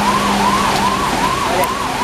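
A truck rumbles through floodwater.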